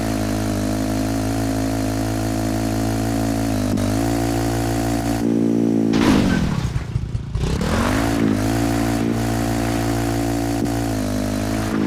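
A motorcycle engine hums steadily, dipping and rising as it shifts gears.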